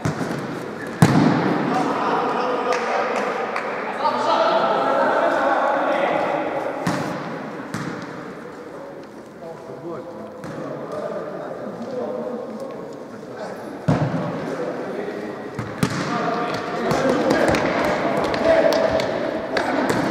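A ball thumps off a player's foot.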